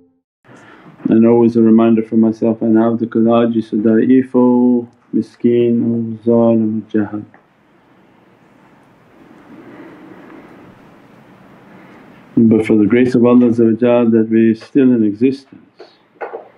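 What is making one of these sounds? An elderly man speaks slowly and calmly, heard through a microphone.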